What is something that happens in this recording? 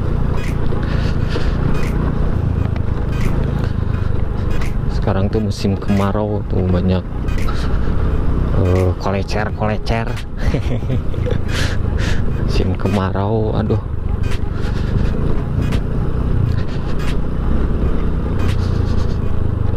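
A scooter rattles and knocks over a bumpy dirt track.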